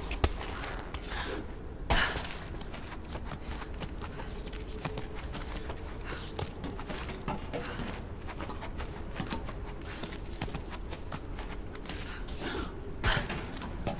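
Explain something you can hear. Hands and boots clank against a metal mesh wall during a climb.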